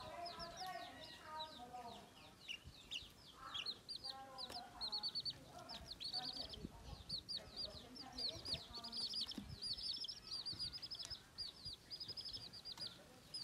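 Chicks peep shrilly and constantly, close by.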